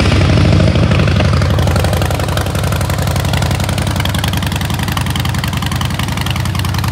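A motorcycle engine idles with a deep, loping rumble.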